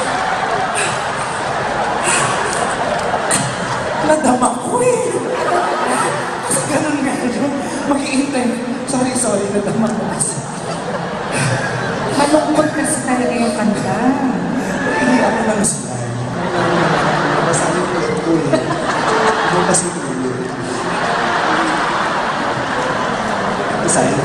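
A woman sings into a microphone over loudspeakers in a large hall.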